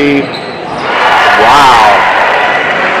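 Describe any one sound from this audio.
A referee blows a whistle.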